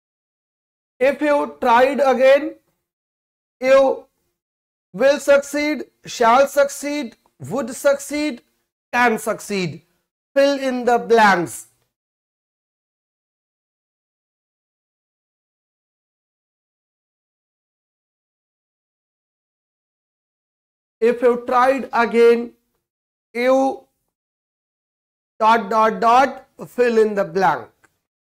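A man explains calmly into a close microphone, with pauses.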